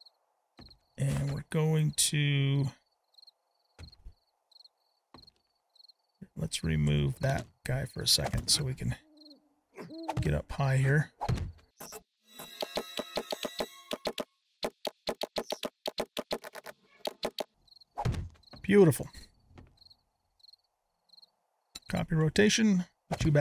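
A man talks casually and closely into a microphone.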